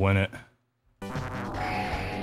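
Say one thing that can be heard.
Electronic arcade game music and effects play.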